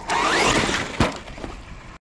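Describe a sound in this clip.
Tyres of a small car scrape and spray dirt.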